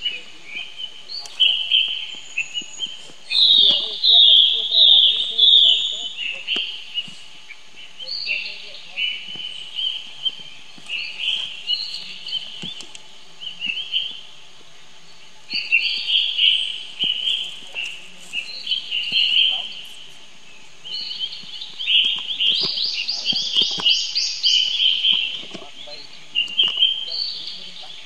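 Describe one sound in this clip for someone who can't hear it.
A baby monkey squeaks and chirps repeatedly close by.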